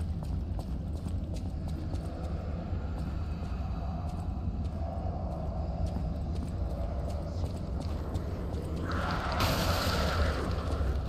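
Footsteps tap quickly on a stone floor.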